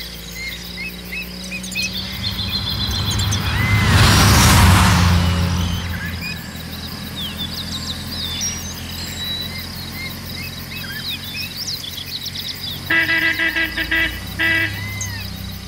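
A van engine hums as the van drives along a road.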